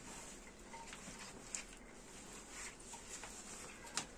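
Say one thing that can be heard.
Wet cloth squelches as it is wrung out.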